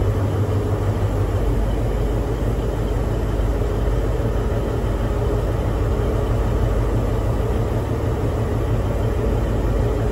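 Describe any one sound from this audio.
A diesel locomotive engine idles with a loud, steady rumbling drone close by.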